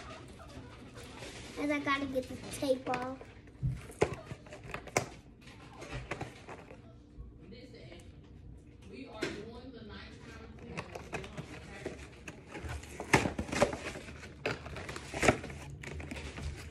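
Plastic packaging crinkles and rustles as it is torn open.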